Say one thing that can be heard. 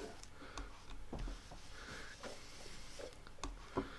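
A sheet of paper slides across a tabletop.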